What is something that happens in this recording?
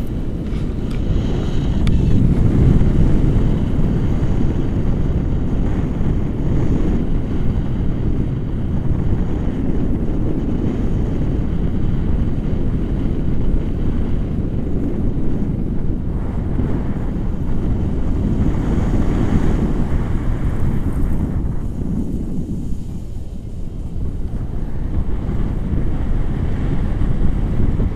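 Strong wind roars and buffets against a microphone outdoors.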